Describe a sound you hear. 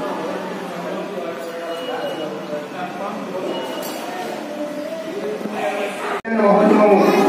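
A man chants prayers in a steady, sing-song voice.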